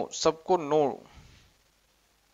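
A man speaks briefly into a phone, close by.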